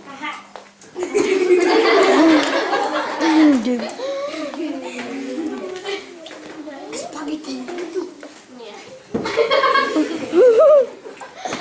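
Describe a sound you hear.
Young children shout and chatter excitedly.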